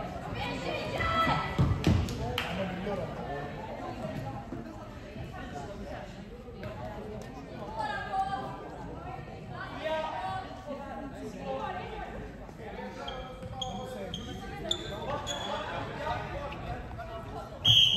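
Sticks clack against a ball and against each other.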